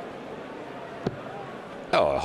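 A dart thuds into a dartboard.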